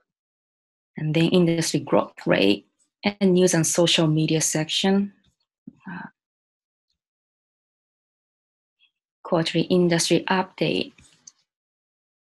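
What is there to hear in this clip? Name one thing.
A young woman speaks calmly and clearly into a close microphone, in short phrases with pauses.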